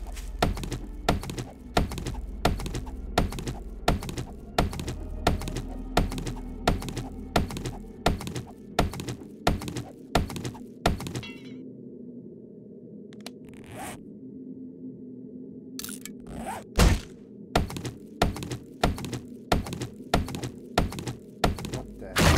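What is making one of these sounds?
A stone axe chops rapidly into a tree trunk with hard, regular knocks.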